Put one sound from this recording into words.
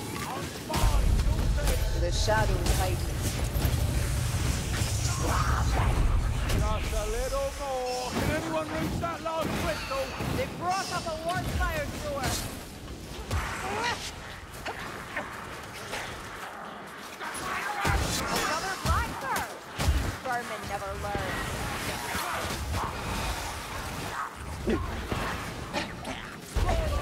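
Swords clang and slash against enemies.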